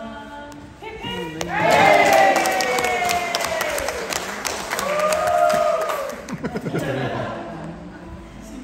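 Women sing loudly with long, sliding notes in a large echoing hall.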